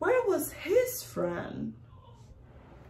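A young woman reads aloud expressively, close by.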